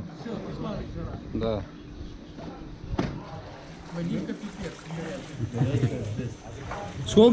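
Water splashes gently as men move in a pool.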